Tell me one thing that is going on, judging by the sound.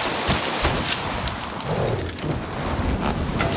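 A skier tumbles with a rough crunch into the snow.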